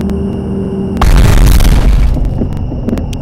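A vehicle crashes into a van with a loud, brief thud and crunch.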